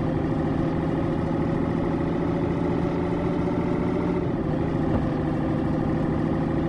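A truck engine rumbles steadily at cruising speed.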